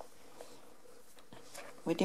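A brush strokes softly through a rabbit's fur.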